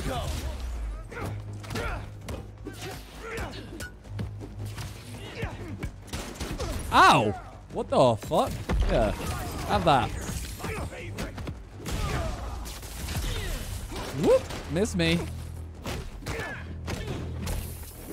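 Punches and kicks thud in a game fight.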